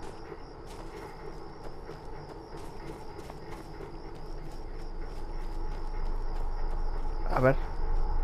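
Footsteps crunch steadily over grass and snow.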